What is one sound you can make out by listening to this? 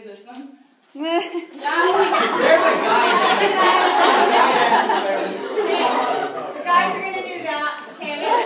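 A group of young people sing together loudly in an echoing room.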